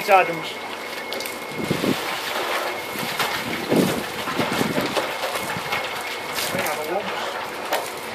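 Ice tumbles into a cement mixer drum.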